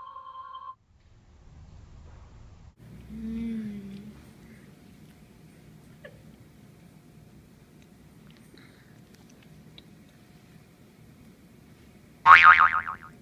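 A young girl chews food with her mouth close to the microphone.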